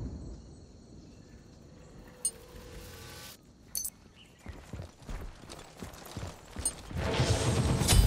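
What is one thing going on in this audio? Magic spells blast and crackle in a game.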